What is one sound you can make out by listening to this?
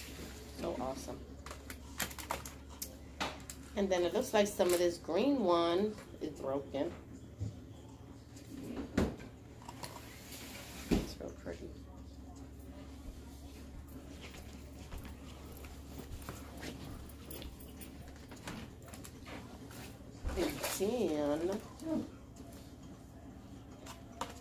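Plastic packaging crinkles and rustles in a woman's hands.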